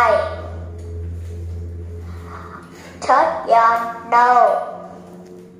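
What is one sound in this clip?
A young girl speaks clearly into a microphone.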